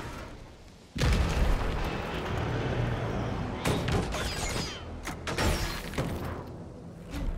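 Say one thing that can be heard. Flames roar and crackle.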